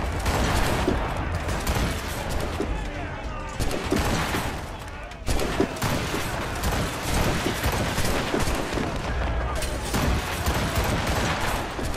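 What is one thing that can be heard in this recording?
A swivel gun fires in rapid bursts.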